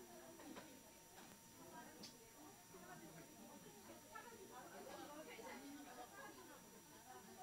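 Many men and women chatter at once in a busy room.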